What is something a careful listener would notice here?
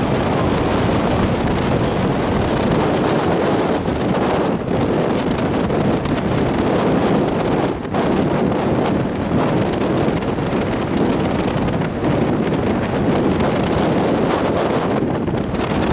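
Waves crash and roll onto the shore in a steady roar.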